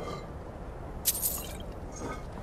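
Coins clink briefly.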